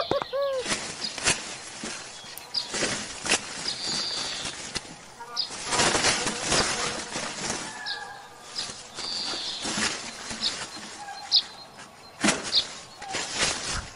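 Fingers pull young plants from soft soil with a soft rustle.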